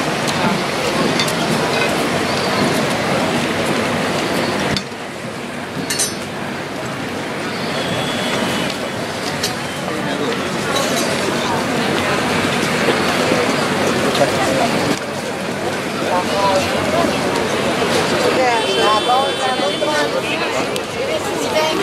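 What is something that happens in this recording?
A crowd of men and women murmurs and talks outdoors.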